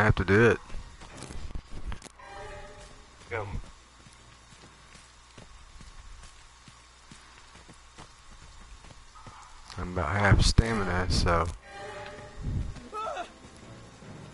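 A man talks close to a microphone, in bursts and with animation.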